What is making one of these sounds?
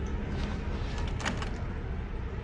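A door handle rattles.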